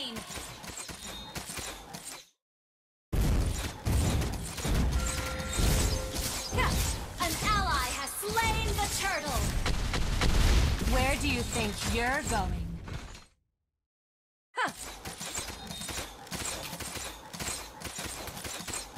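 Video game combat sounds clash and zap in quick bursts.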